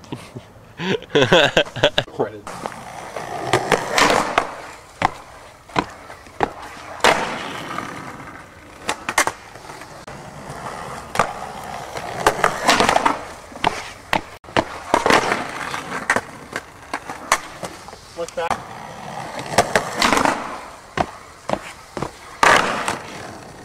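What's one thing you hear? A skateboard grinds and slides along a concrete ledge.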